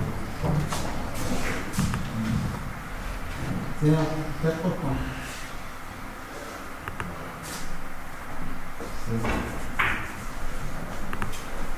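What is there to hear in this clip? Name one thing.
A billiard cue strikes a ball with a sharp tap.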